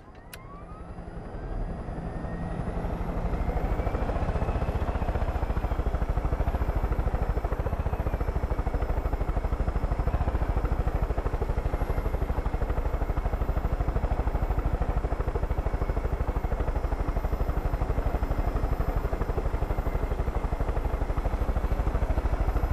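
A helicopter's rotor thumps rapidly and steadily.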